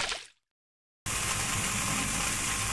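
Molten liquid pours in a steady rushing stream.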